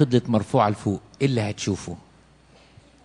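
An elderly man speaks with animation into a microphone in a large echoing hall.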